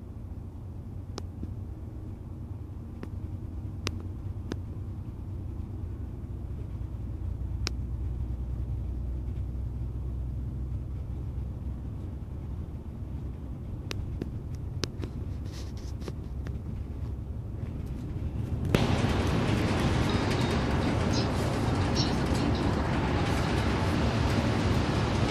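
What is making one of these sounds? A bus engine hums low and steady while driving.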